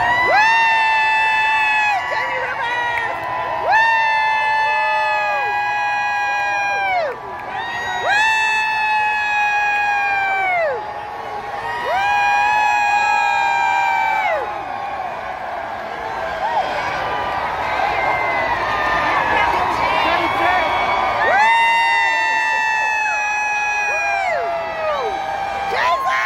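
A truck's air horn blasts again and again in long, loud honks.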